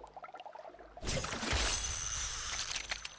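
A spear splashes into water.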